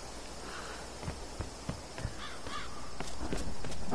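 Footsteps crunch on rough forest ground.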